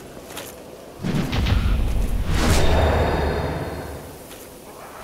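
A heavy blow lands with a loud whoosh and deep rumble.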